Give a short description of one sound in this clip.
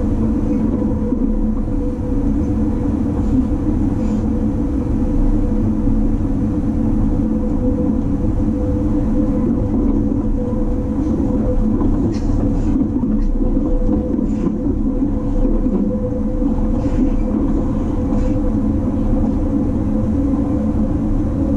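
Rain taps against a train window.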